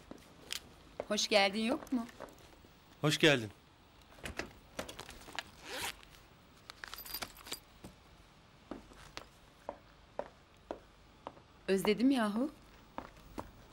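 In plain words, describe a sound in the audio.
A woman speaks playfully, close by.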